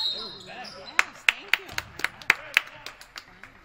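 A basketball bounces sharply on a wooden court.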